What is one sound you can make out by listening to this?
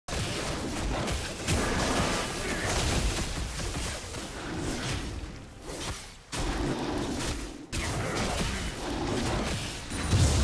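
Video game combat effects clash and whoosh rapidly.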